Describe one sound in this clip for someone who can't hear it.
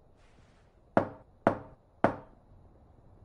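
A young woman knocks sharply on a wooden door three times.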